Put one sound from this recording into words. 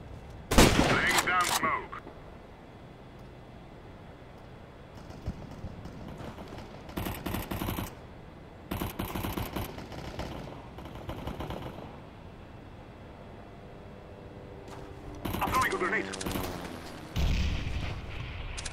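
A sniper rifle scope clicks as it zooms in.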